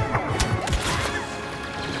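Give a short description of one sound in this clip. Blaster shots crack and zap nearby.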